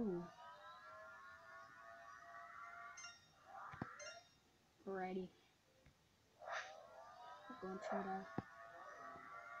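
Electronic game music plays with chiming, sliding tones.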